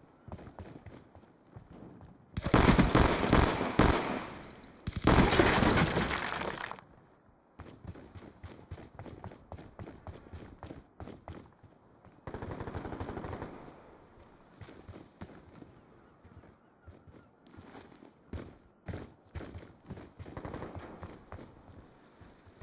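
Footsteps tap quickly on stone.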